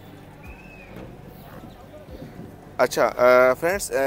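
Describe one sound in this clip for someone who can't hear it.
A car boot latch clicks and the lid swings open.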